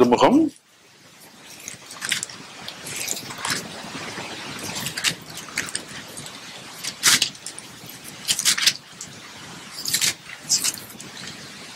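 An elderly man reads aloud calmly into a microphone in an echoing room.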